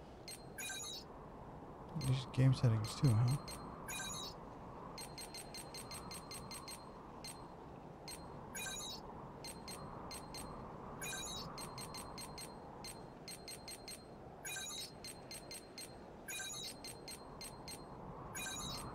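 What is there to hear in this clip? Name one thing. Game menu clicks tick quickly, over and over.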